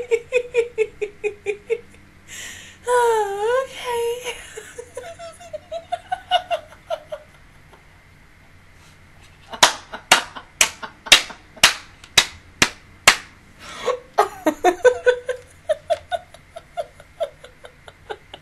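A young woman laughs loudly and breathlessly close to a microphone.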